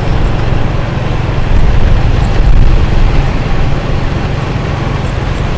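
Motorbike engines drone along a busy road.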